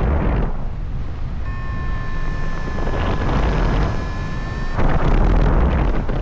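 Wind rushes loudly past outdoors, gusting.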